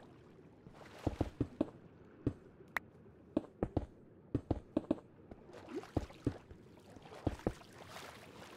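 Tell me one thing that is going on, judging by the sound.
A pickaxe chips at stone with sharp, quick knocks.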